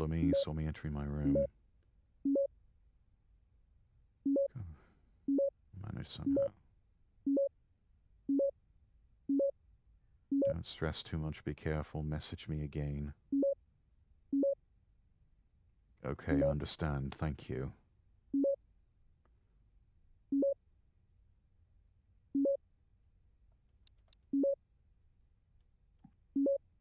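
A phone gives short two-note blips as messages arrive, again and again.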